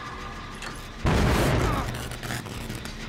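A machine bursts with a loud explosive bang.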